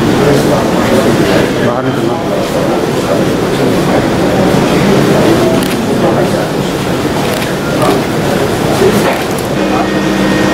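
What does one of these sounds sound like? A crowd of men murmur and talk nearby.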